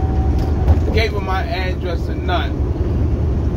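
A man sings loudly nearby.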